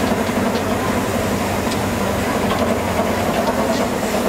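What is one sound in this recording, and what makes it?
A crane engine rumbles steadily.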